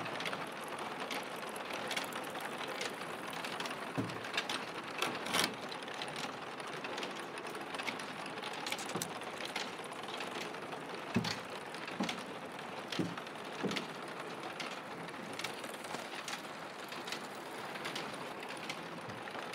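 Clay tiles clink and clatter as they are stacked by hand.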